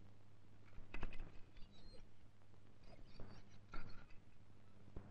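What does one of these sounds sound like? A metal gate rattles and clicks as it is opened.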